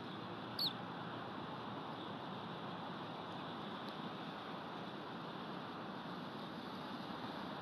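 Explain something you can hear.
Wind rustles steadily through pine trees outdoors.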